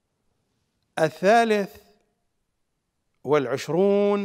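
A middle-aged man speaks with emphasis into a close microphone.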